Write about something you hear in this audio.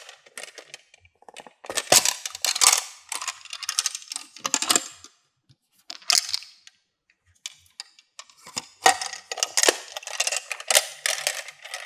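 Plastic beads clack together.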